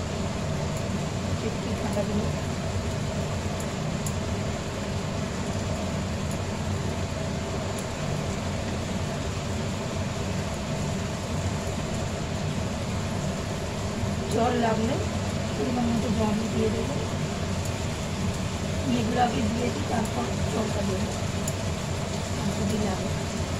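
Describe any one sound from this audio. Oil sizzles in a frying pan.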